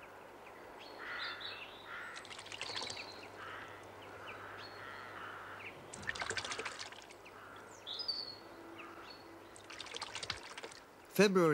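A young jackdaw calls and begs for food.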